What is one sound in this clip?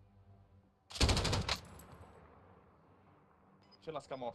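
A rifle fires a loud, sharp shot.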